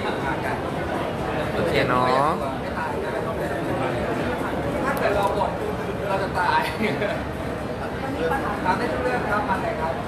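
A man speaks into microphones in a loud, busy crowd.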